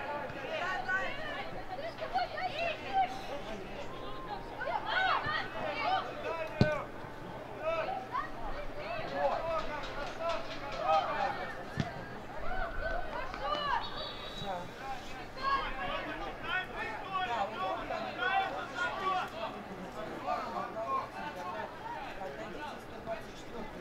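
Young players shout and call to each other across an open outdoor field.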